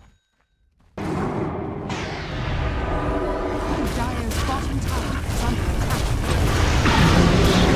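Game spells burst and blows clash loudly in a busy fight.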